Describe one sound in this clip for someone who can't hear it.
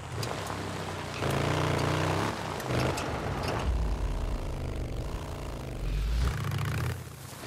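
A motorcycle engine rumbles and revs as it rides over rough ground.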